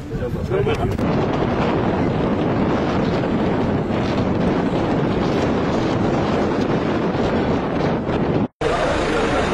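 An excavator engine rumbles steadily.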